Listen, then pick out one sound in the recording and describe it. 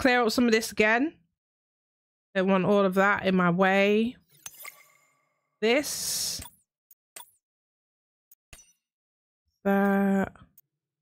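A young woman speaks animatedly and close into a microphone.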